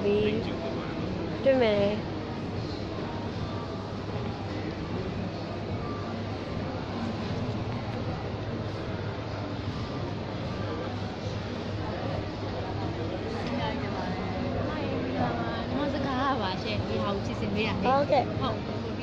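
A young woman speaks softly close to a phone microphone.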